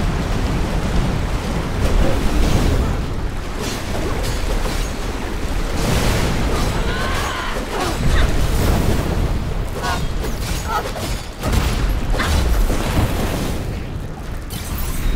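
Magic blasts whoosh and burst with heavy booms.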